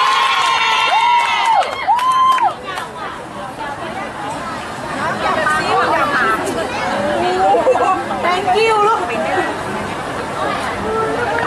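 A crowd of young people chatters and calls out nearby outdoors.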